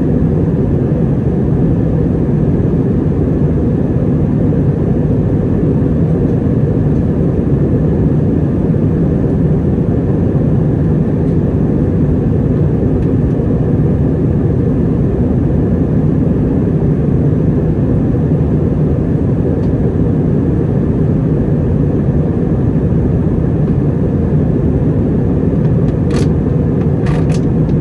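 A jet engine roars steadily inside an airliner cabin in flight.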